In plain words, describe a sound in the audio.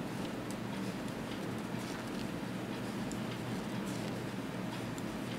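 Wooden knitting needles click and tap softly against each other.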